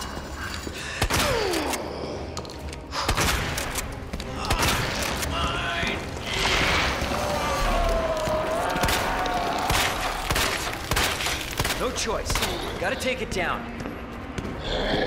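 Pistol shots ring out sharply, one at a time.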